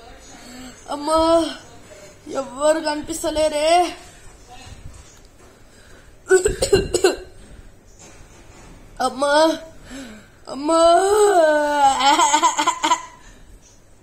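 A young man moans and cries out in pain close by.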